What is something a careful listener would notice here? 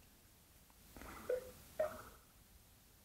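A man speaks briefly and quietly nearby.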